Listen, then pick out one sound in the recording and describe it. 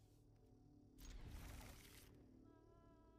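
A loud whoosh sweeps through and fades.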